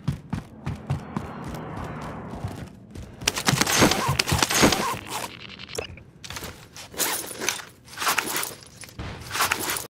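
Footsteps thud up a flight of stairs.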